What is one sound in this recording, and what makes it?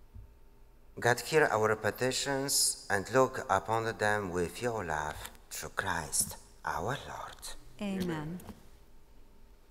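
A man reads out calmly through a microphone in a large echoing hall.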